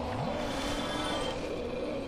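A fire flares up with a soft whoosh.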